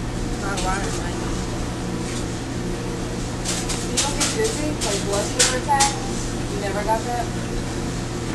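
A young woman speaks casually, close by.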